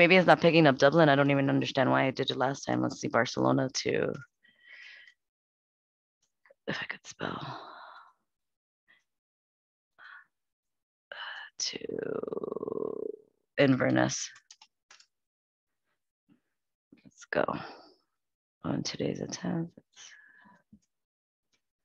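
A woman speaks calmly and clearly into a microphone, as if over an online call.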